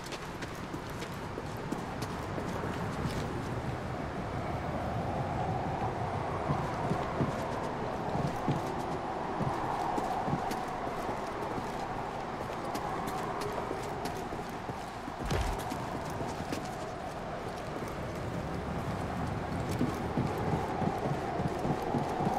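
Footsteps crunch quickly over gravel.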